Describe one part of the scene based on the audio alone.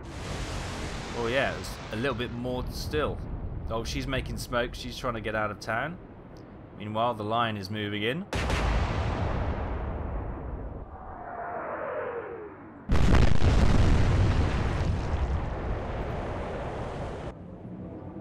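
Shells splash heavily into the sea.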